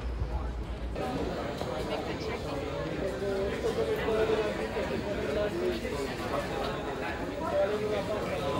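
A crowd of people chatters indoors.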